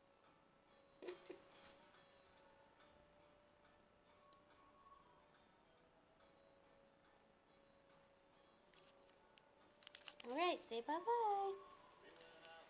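A small puppy whines and yelps in short, high cries.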